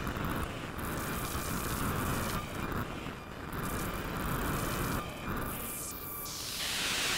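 A modular synthesizer plays noisy, sweeping electronic tones that swell and fade.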